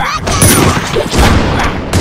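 A cannon fires with a burst of fire.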